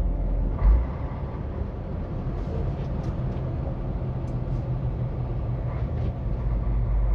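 Tyres roll over asphalt with a low rumble.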